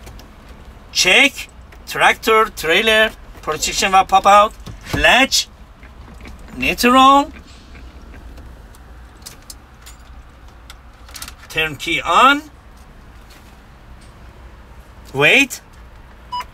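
A young man speaks close by, explaining calmly.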